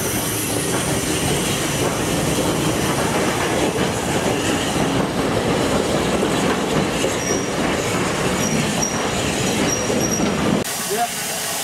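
A steam train rolls past close by, its wheels rumbling and clattering on the rails.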